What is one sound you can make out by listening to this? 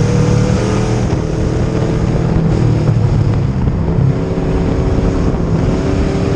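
A race car engine roars loudly and steadily up close.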